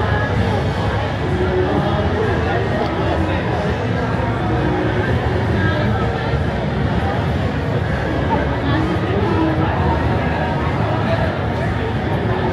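A crowd of young people chatters loudly outdoors.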